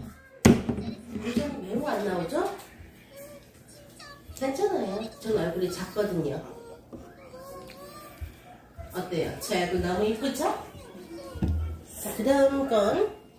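A young girl talks and sings playfully close by.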